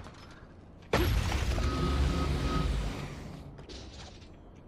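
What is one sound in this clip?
A chest bursts open with a loud crackle.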